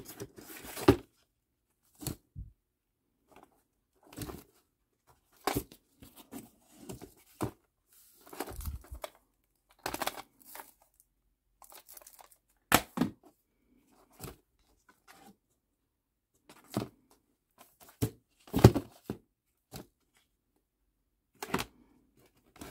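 A hand flips through cardboard record sleeves in a cardboard box.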